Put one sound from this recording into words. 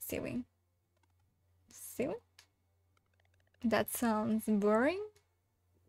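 A young woman speaks playfully and with animation, close to a microphone.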